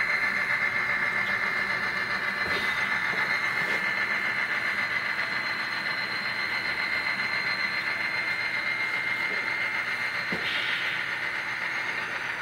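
A small model train locomotive hums and whines steadily as it rolls slowly along the track.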